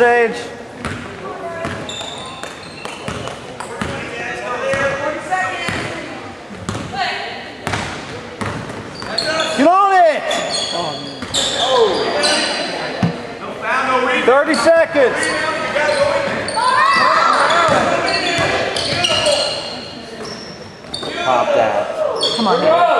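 A basketball thumps as it bounces on the floor.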